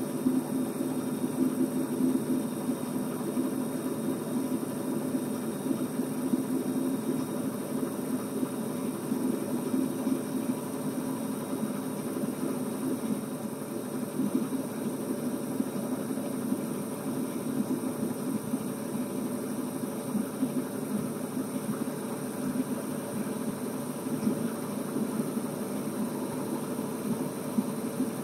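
A truck engine drones steadily while driving along a road.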